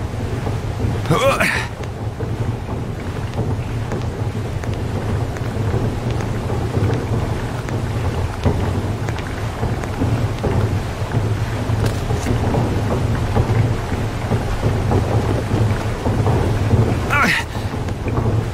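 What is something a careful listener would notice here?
A sharp whoosh sweeps past as a figure leaps.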